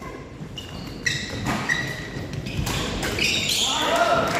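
Sports shoes squeak on the court floor.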